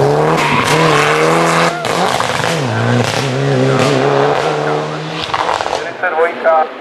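A rally car engine roars and revs hard as the car pulls away into the distance.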